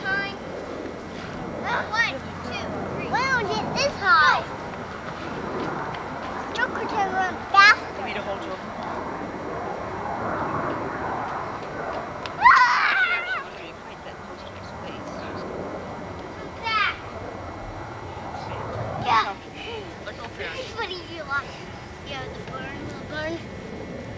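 A young child talks in a high voice.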